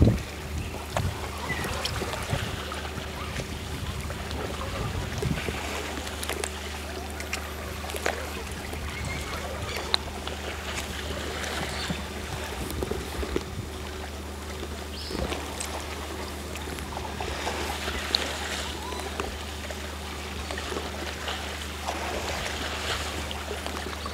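Calm sea water laps gently.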